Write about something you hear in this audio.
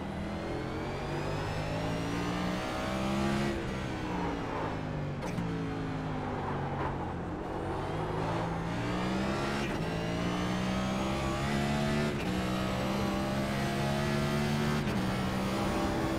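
A race car engine roars loudly, revving up and dropping as gears shift.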